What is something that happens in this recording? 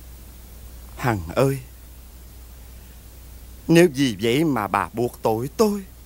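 A man speaks with emotion, close by.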